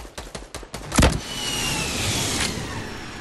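A rocket launcher fires with a loud whoosh and bang.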